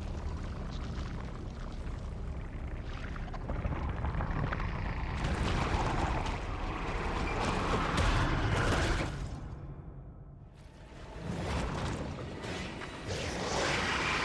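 A large creature rustles and creaks as it moves.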